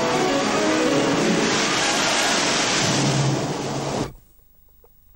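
Waves crash and spray loudly.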